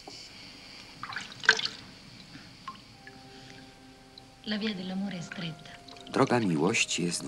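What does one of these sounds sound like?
Water splashes softly in a wooden bucket.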